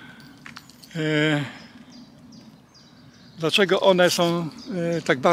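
An older man talks calmly close by, outdoors.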